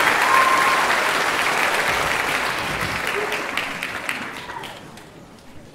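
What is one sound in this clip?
An orchestra plays loudly in a large hall and fades away.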